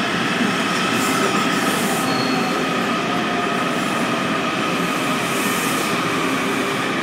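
Train brakes squeal faintly as the train slows.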